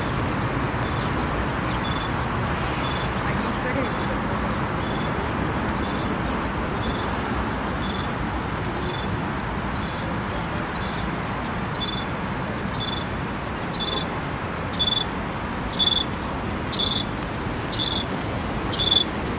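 A pedestrian crossing signal beeps steadily once a second, growing louder.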